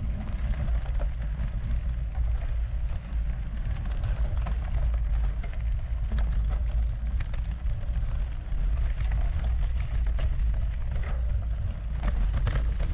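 Bicycle tyres crunch and rattle over a gravel trail.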